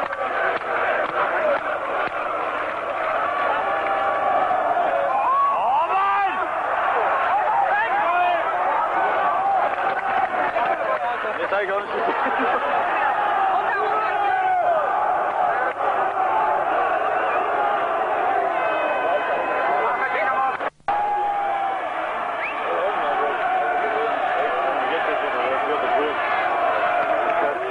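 A large stadium crowd chants and sings loudly outdoors.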